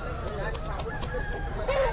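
A rooster flaps its wings.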